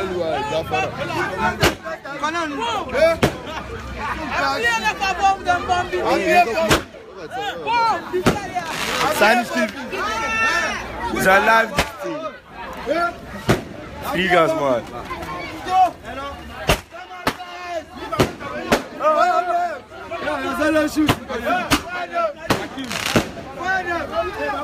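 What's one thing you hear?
Young men talk and shout excitedly close by.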